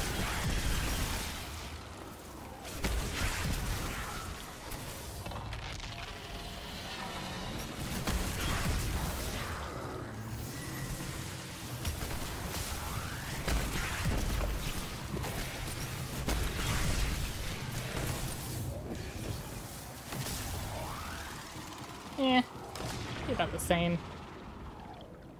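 Energy blasts crackle and boom in quick bursts.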